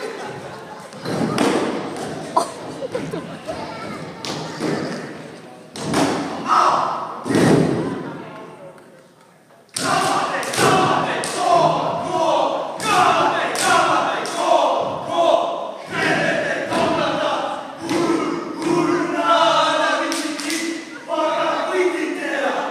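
Bare feet stamp and slap on a wooden stage.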